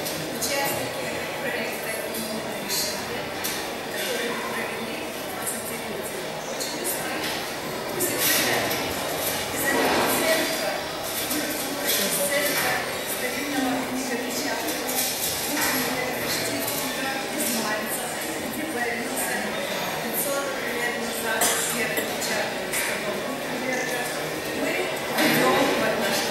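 A man speaks into a microphone over loudspeakers in an echoing hall.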